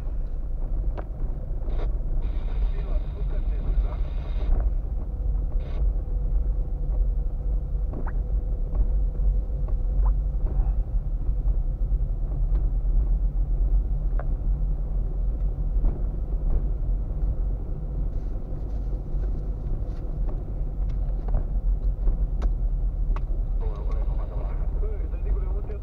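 A car engine hums steadily from inside a slowly moving car.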